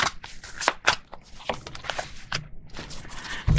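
A playing card is laid down softly on a cloth.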